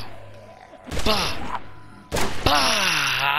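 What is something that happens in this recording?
A pistol fires a loud shot.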